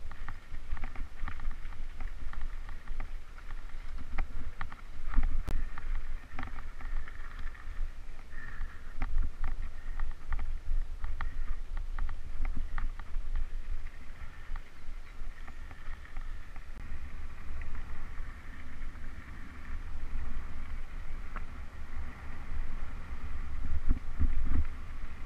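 Bicycle tyres crunch over loose gravel.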